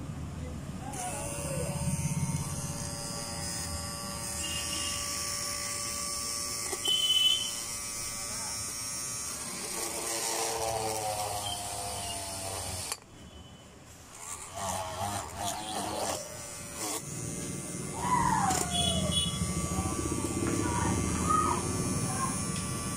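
A small electric motor whirs steadily.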